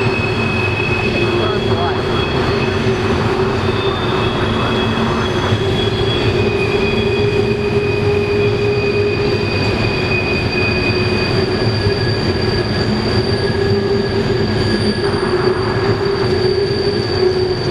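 Loaded freight cars rumble and clank steadily along the rails.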